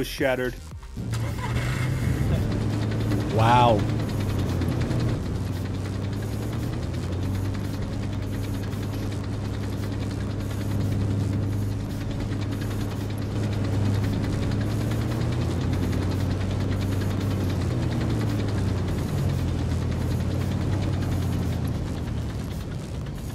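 A tracked vehicle's engine rumbles steadily as it drives.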